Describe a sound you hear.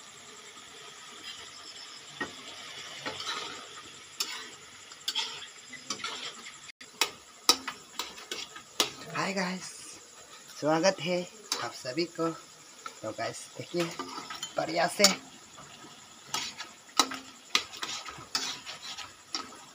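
Meat sizzles and crackles in a hot pan.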